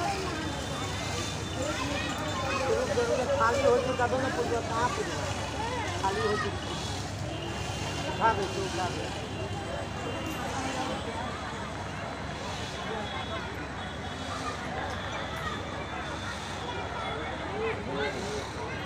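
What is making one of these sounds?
A crowd of men and women talks nearby in a lively, noisy hum.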